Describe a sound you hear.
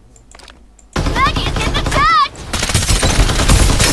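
Gunfire bursts loudly and rapidly.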